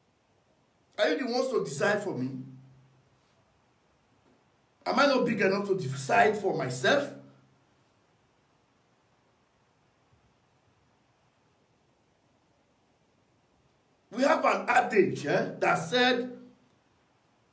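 A man speaks close by in short bursts with long pauses.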